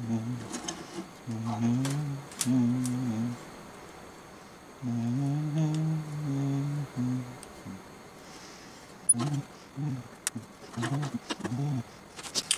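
A steel bar clamp clicks as it is adjusted.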